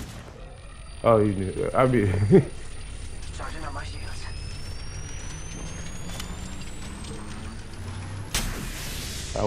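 An electric charge hums and rises steadily in pitch, then bursts.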